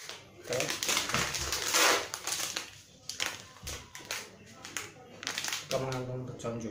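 A plastic cup crinkles in a hand.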